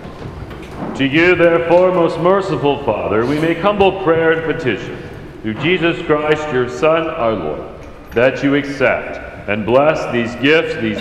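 An elderly man chants a prayer into a microphone in a large echoing hall.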